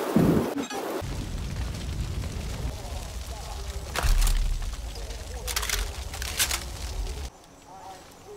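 Flames crackle and roar from a burning vehicle.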